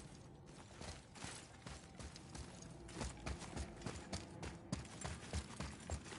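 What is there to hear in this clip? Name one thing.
Footsteps crunch quickly over stony ground.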